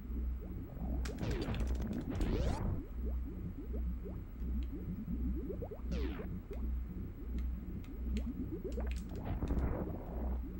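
Retro video game sound effects zap and sweep.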